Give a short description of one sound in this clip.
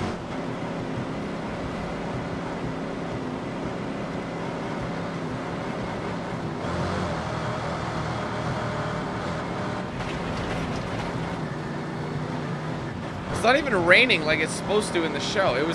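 Tyres rumble and crunch over loose gravel.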